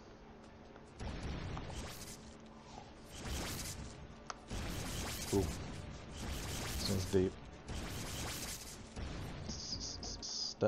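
Game explosions and spell effects crackle and boom.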